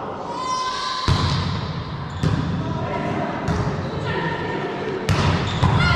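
A volleyball is struck with sharp slaps in a large echoing hall.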